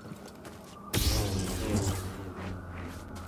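A lightsaber ignites with a sharp whoosh.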